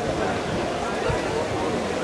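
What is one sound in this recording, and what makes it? A man speaks into a microphone, heard through a loudspeaker.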